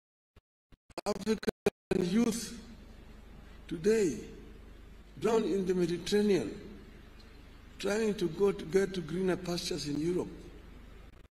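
A man speaks into a microphone and is heard over loudspeakers in a large echoing hall.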